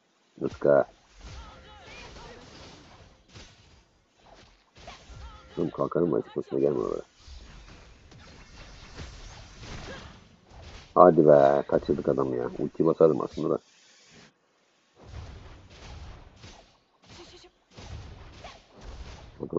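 Video game combat effects clash and whoosh in quick bursts.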